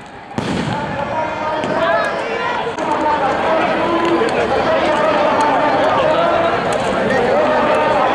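Fireworks crackle and pop rapidly.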